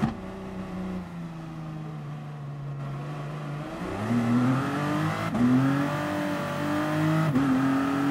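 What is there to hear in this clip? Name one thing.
A racing prototype car's engine revs hard as it accelerates and shifts up through the gears.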